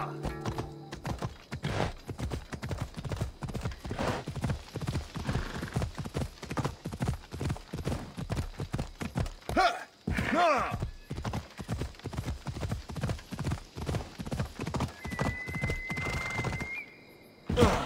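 A horse gallops with quick, steady hoofbeats on rough ground.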